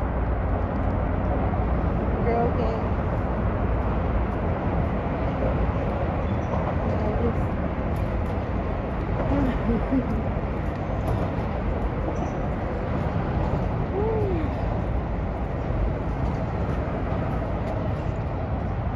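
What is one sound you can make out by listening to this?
Wind blusters steadily across the microphone outdoors.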